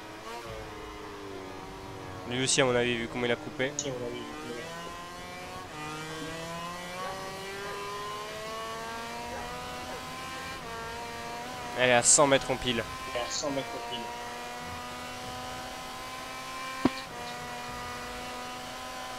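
A racing motorcycle engine whines at high revs, climbing in pitch and dropping briefly at each gear change.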